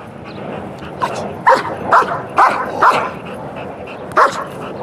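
A dog barks loudly in short bursts nearby.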